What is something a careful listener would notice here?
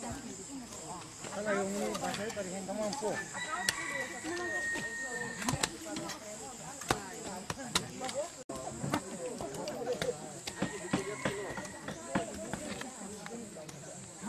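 Women talk and call out nearby outdoors.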